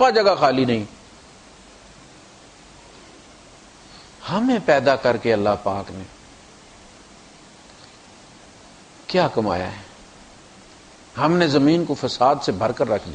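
A man chants melodically into a microphone in phrases with long pauses.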